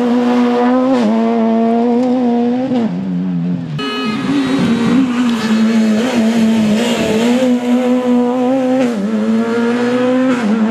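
A rally car engine roars loudly at high revs, with the pitch dipping at each gear change.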